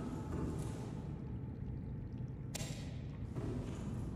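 A ripe fruit is plucked from a plant with a soft pop.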